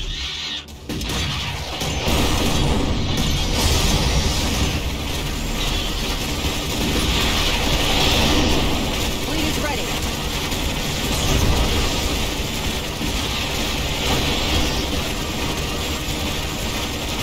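Rapid gunfire rattles in a dense battle.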